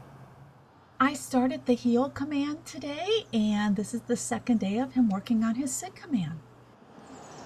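A woman talks brightly to a dog.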